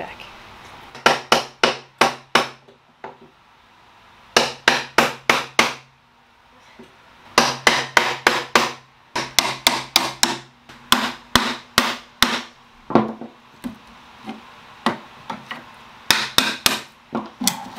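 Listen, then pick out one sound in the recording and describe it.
A hammer taps sharply on wood in quick bursts.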